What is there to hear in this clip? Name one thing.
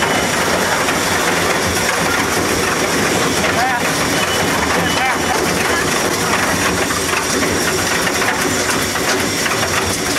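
Wood chips pour and patter out of a chute.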